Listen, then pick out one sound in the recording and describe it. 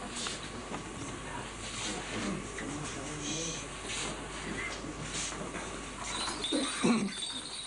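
A censer's metal chains jingle and clink as a man swings it.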